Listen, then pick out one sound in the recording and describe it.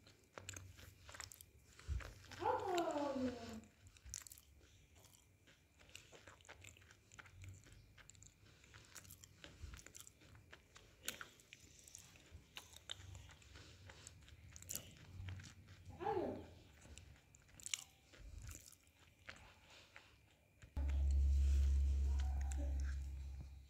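A young woman makes soft, wet mouth clicks very close to the microphone.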